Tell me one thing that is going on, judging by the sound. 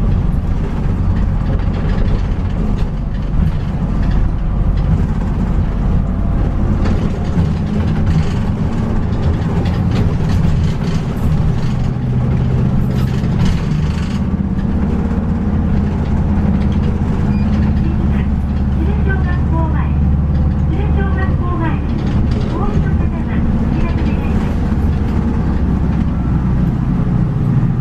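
Tyres hum on asphalt.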